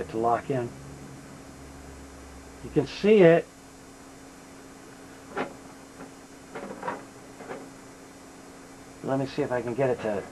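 An electronic tone warbles up and down in short bursts.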